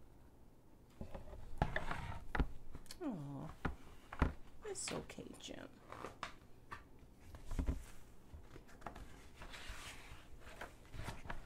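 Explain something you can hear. Pages of a book rustle and turn.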